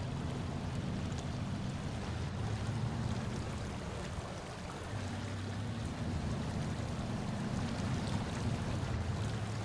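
Water splashes around truck wheels.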